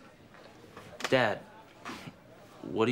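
A man speaks cheerfully close by.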